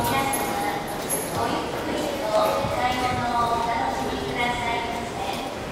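Footsteps echo along a hard-floored passage.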